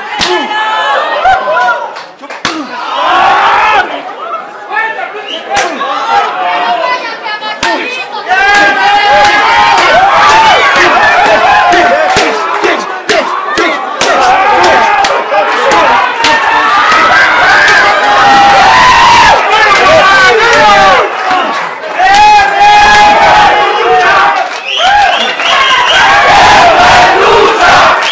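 Hands slap loudly against bare chests.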